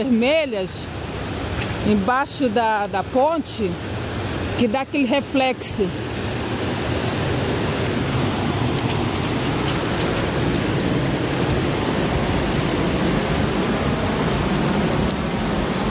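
Water rushes and churns loudly over a weir.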